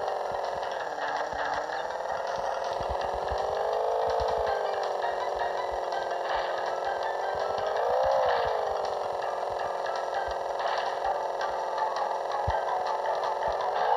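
A small engine hums steadily, its pitch rising and falling.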